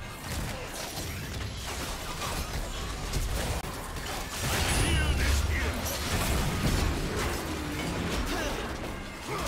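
Magic spells blast and crackle in a fight.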